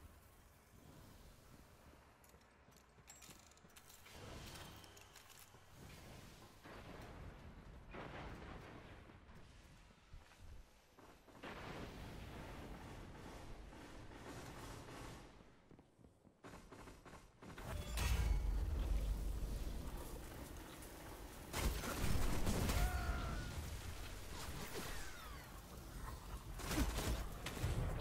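Gunfire bursts out in quick loud blasts.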